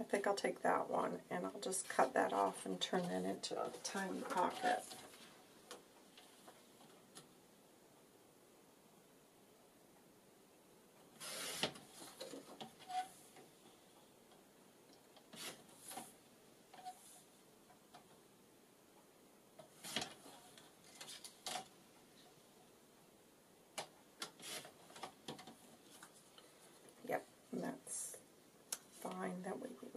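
Paper cards rustle and slide against each other as they are handled.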